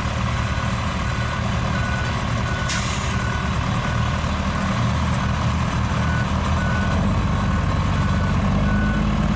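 A truck's reversing alarm beeps at a steady pace.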